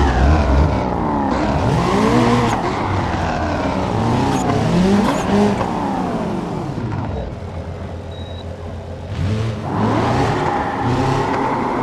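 A sports car engine roars, revving up and dropping as it shifts gears.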